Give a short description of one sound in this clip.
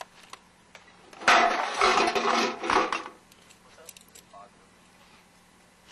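Metal ammunition magazines clink and rattle as they are handled.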